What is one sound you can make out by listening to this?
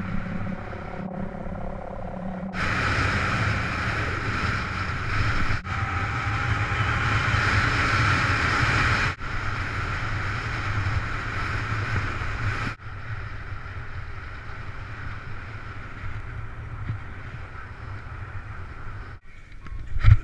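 Tyres rumble over a rough road surface.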